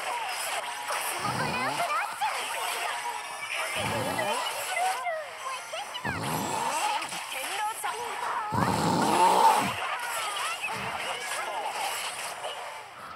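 Upbeat music plays throughout.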